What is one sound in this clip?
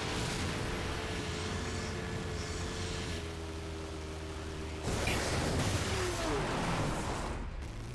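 A dune buggy's engine roars at speed.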